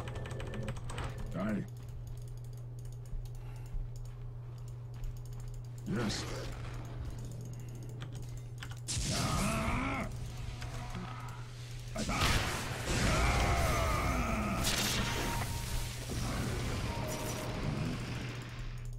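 Magic spells whoosh and crackle in a game.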